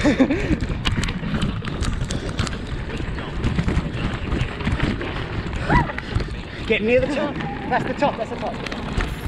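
Bicycle tyres crunch steadily over loose gravel.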